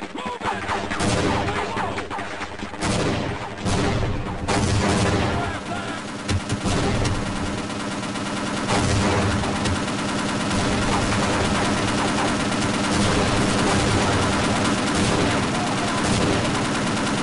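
Explosions boom nearby, one after another.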